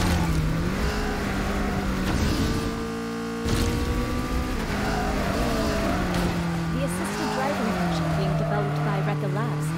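A sports car engine roars loudly, its pitch rising and falling.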